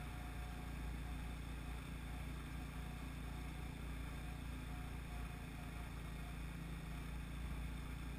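A vehicle engine hums steadily close by.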